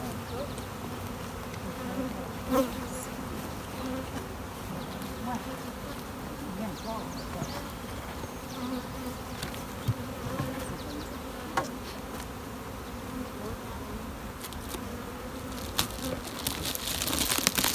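Bees buzz steadily around a hive.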